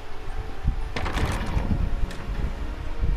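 A heavy wooden door swings open.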